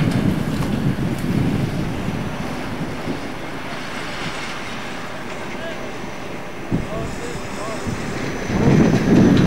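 A diesel locomotive rumbles as it pulls a railcar slowly along the track.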